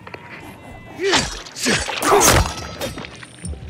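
A blade slashes and thuds heavily into a body.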